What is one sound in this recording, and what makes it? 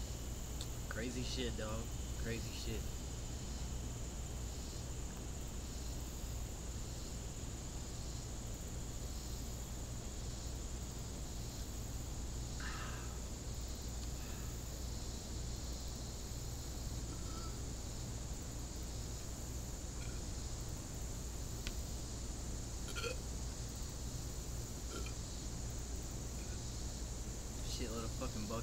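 A young man talks close by, casually.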